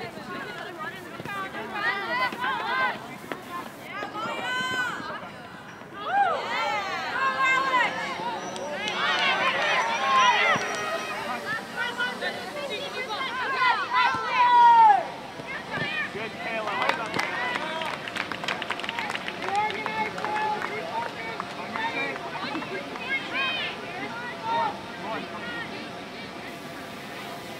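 Young women shout and call to each other across an open outdoor field.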